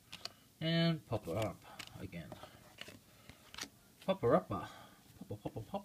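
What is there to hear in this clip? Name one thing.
Playing cards slide and tap against each other.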